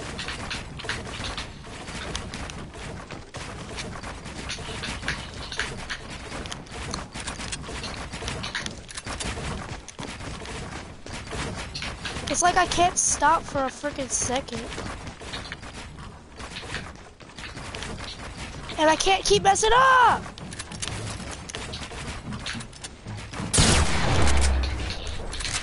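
Game building pieces snap into place with quick clacks and thuds.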